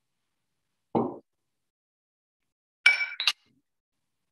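Glass jars are set down on a table with sharp knocks.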